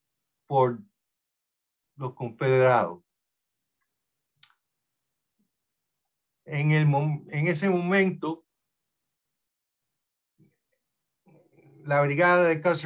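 An elderly man speaks calmly over an online call, in short phrases with pauses.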